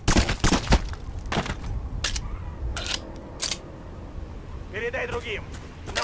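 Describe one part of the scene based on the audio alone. A pistol is reloaded with a metallic click.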